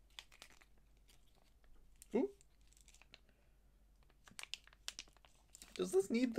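A plastic wrapper crinkles as hands tear it open.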